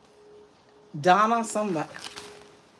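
An elderly woman speaks close by with animation.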